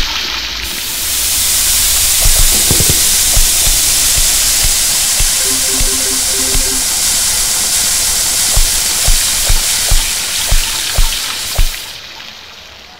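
Meat sizzles steadily on a hot grill.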